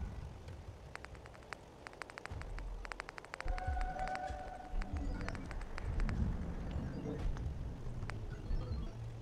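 Short interface clicks tick in quick bursts.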